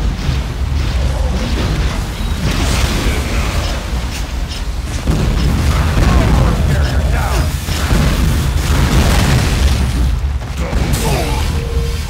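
Explosions boom.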